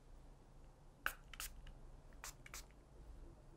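Small metal tools clink softly against each other.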